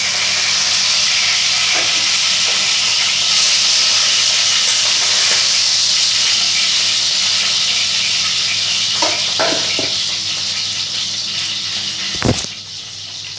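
Food sizzles loudly in hot oil in a pan.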